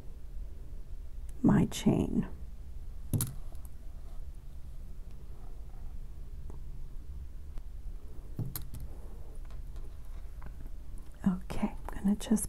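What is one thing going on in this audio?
A metal chain clinks softly as it is handled.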